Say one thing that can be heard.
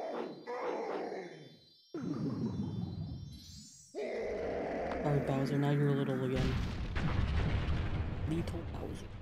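A monster roars loudly in a video game.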